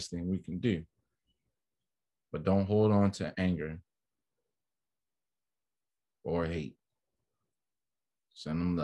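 A man speaks calmly in short bursts with pauses, heard close through an online call microphone.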